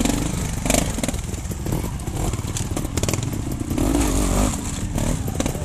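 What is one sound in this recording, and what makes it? A trials motorcycle engine revs in bursts as the bike climbs over rocks.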